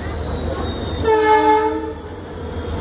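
A locomotive horn blares loudly for a moment.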